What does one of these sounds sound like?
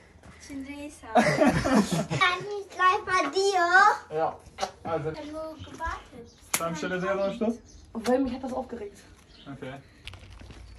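A bearded adult man talks loudly with excitement close by.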